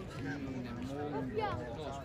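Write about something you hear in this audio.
A child walks past close by with soft footsteps.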